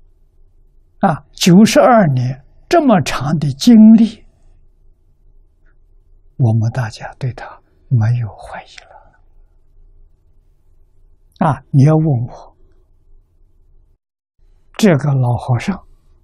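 An elderly man speaks calmly and warmly into a close microphone, with pauses between phrases.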